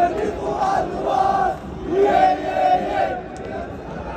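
A young man shouts with excitement close by.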